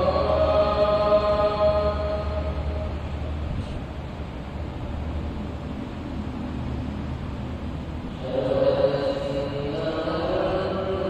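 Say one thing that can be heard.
A man chants through a loudspeaker in a large echoing hall.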